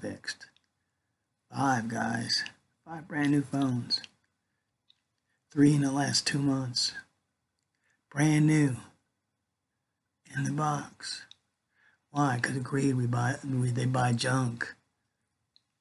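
An older man speaks calmly and close to a microphone, in short bursts with pauses.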